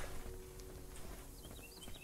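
A fire crackles.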